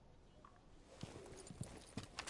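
Gear rattles as a climber rappels down a rope.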